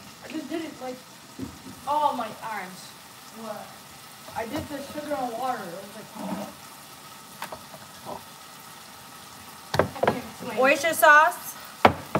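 A woman talks with animation close by.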